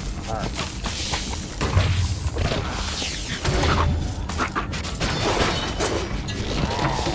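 Game weapons fire in rapid bursts of zaps and bangs.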